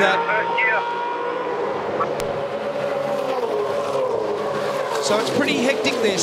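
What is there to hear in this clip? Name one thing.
Several race cars scream past one after another.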